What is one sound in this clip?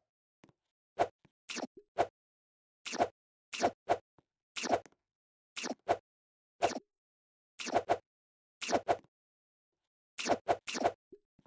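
Short bright pops sound again and again as fruit is collected.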